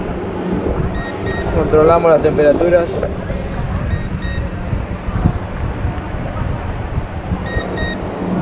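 A handheld thermometer beeps in short double beeps.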